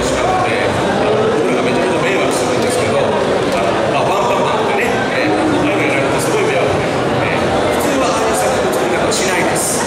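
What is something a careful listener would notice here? A man talks calmly into a microphone through loudspeakers.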